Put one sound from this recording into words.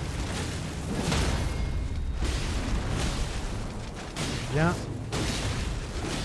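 Weapons strike flesh with heavy thuds.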